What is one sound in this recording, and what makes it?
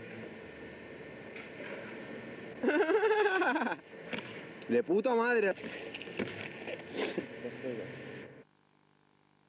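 Skateboard wheels roll on rough pavement outdoors.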